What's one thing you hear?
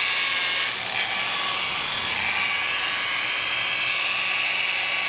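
An electric polisher whirs steadily against a car panel.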